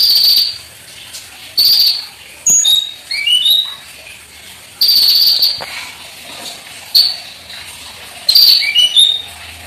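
A small bird sings loud, sharp chirps and trills close by.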